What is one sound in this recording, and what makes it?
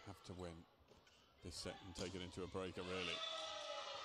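A volleyball is struck hard with a thump.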